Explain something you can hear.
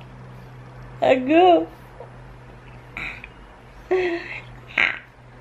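A young woman laughs warmly close by.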